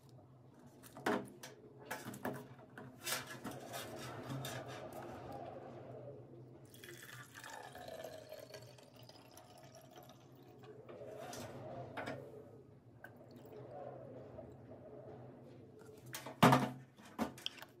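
Plastic containers knock and clatter against a metal sink.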